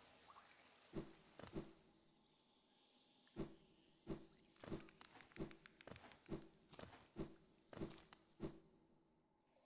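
Soft thuds of a small game character jumping and landing come in a quick, regular beat.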